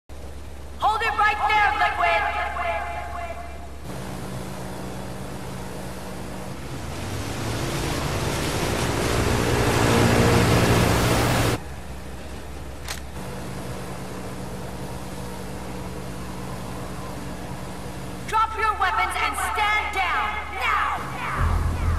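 A young woman speaks calmly over a radio.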